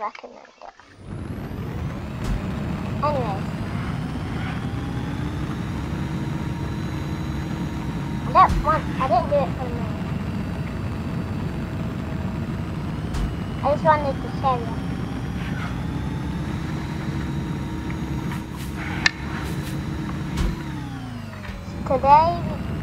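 A game car's engine roars steadily as it speeds along.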